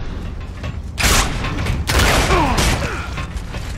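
Gunfire bursts loudly in short blasts.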